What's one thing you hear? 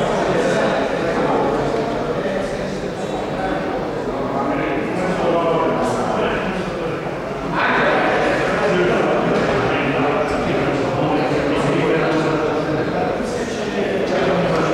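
Several men and women talk over one another in a large echoing hall.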